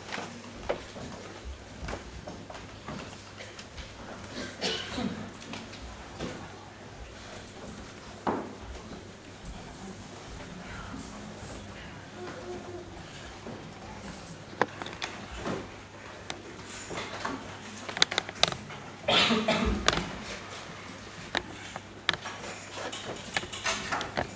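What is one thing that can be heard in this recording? Young people murmur and talk quietly nearby.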